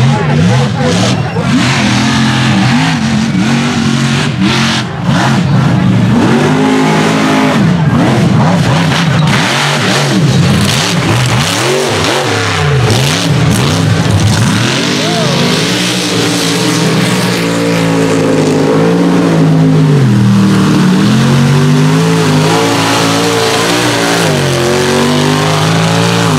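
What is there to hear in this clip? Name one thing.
Mud and dirt spray and splatter from spinning tyres.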